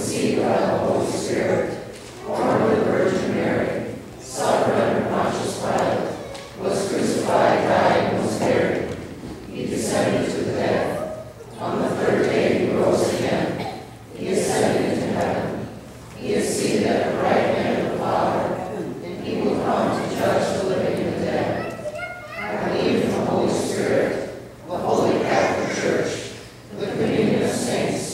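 A woman reads aloud into a microphone, heard through loudspeakers in an echoing hall.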